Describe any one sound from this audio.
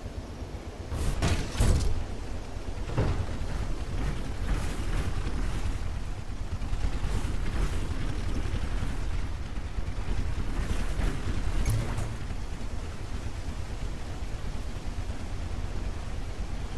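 A low mechanical engine hums and rumbles.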